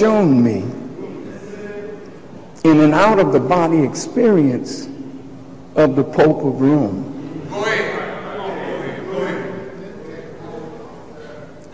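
A man preaches forcefully through a microphone in a large echoing hall, with long pauses between phrases.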